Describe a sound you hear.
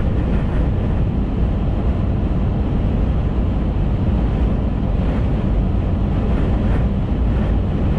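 A car's engine and tyres rumble steadily from inside the cabin as it drives.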